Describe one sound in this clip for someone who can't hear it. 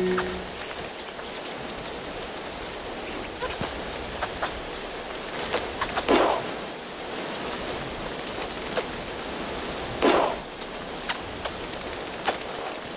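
Footsteps crunch and scrape over loose rocks.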